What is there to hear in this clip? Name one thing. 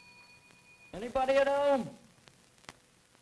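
A young man calls out loudly.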